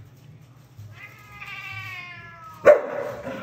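A cat lets out a long, wavering meow.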